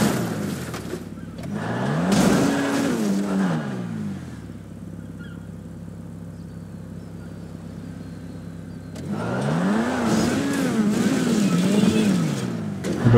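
A sports car engine revs up and down in bursts, idling in between.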